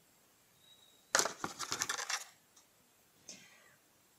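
A small cardboard box is picked up and set down on a table.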